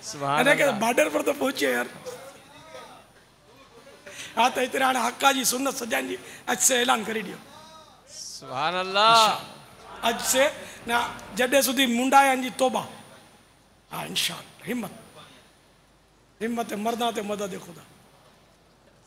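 A middle-aged man speaks with animation into a microphone, in a lively and expressive voice.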